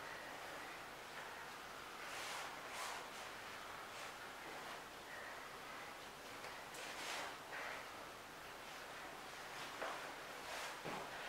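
Clothing rustles and bodies scuff on a mat.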